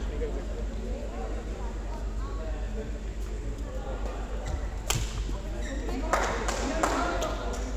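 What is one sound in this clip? A badminton racket smacks a shuttlecock.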